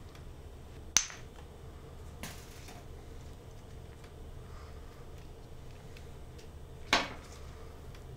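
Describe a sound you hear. A plastic IV bag and tubing rustle and click as they are handled.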